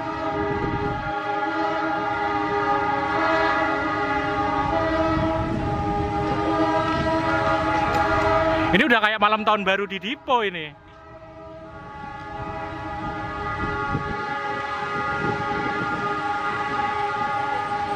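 A diesel locomotive engine drones loudly nearby.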